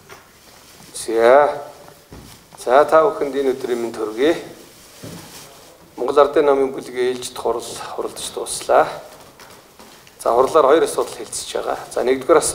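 A man speaks calmly into a microphone, heard through a loudspeaker in a large room.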